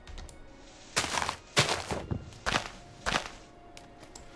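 Leaves crunch in a few quick chops.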